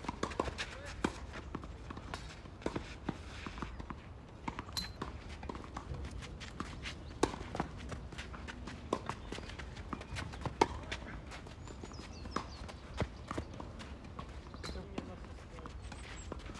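A tennis ball is struck with sharp pops of a racket, back and forth.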